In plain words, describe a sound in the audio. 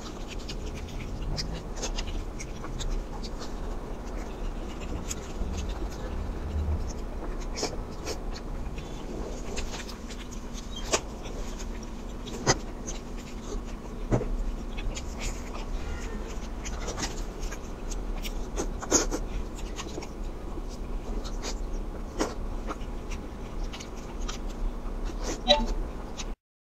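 A young woman chews and smacks her lips close up.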